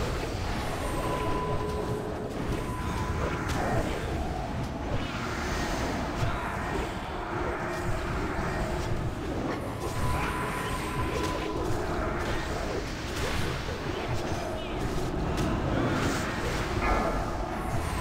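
Game spell effects and combat sounds clash and whoosh throughout.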